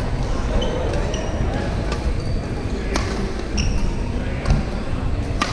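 Rackets hit a shuttlecock with sharp pops in a large echoing hall.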